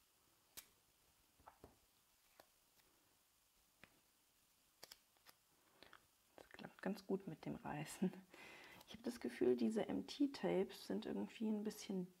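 Paper sheets rustle and tap softly as hands handle them.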